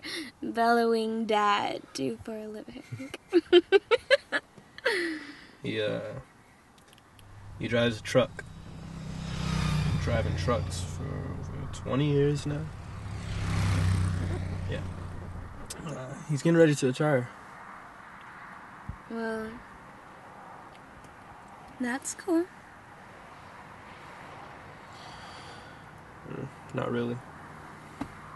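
A young woman speaks softly and laughs close by.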